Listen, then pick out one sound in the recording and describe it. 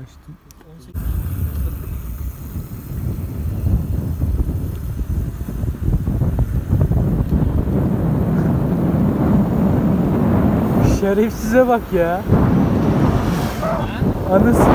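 A motor scooter engine hums as it rides along.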